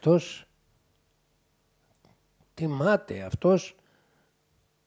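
An elderly man speaks with animation, close by, in short bursts.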